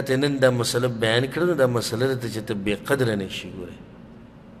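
A man speaks calmly and with emphasis into a microphone.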